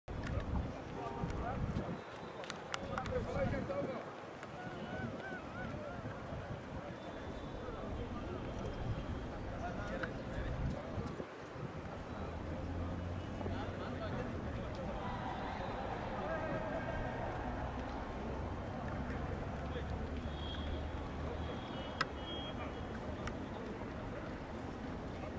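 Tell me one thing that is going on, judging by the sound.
A sparse crowd murmurs and calls out in an open-air stadium.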